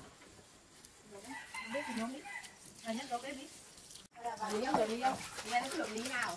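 Water pours from a tap into a basin.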